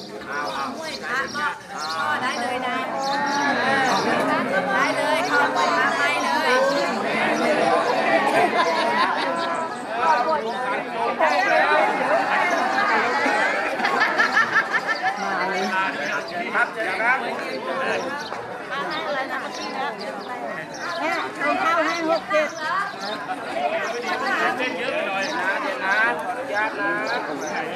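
A crowd of men and women chatter together outdoors.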